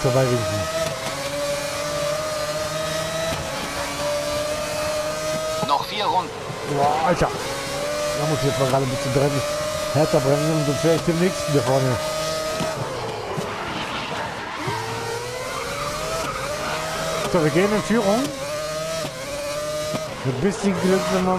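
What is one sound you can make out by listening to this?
A racing car engine screams at high revs, rising and dropping as it shifts gears.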